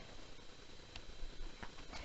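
Paper rustles as a page is turned.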